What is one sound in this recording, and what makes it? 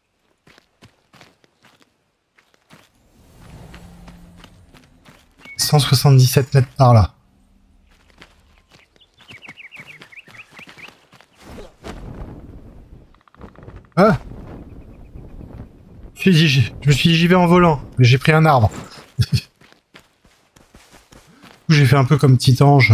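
Footsteps tread softly on grass and earth.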